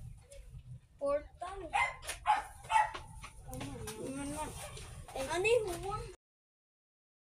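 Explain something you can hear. Young children talk with animation close by.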